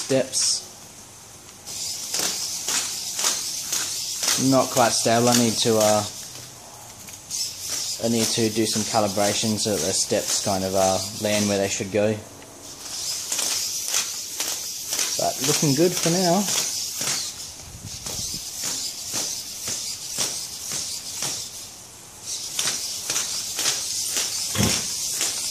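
Plastic robot feet tap on a hard floor.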